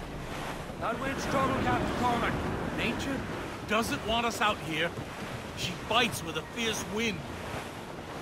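A man shouts orders on deck.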